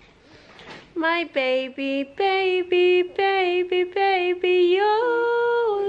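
A young woman sings a slow melody close by.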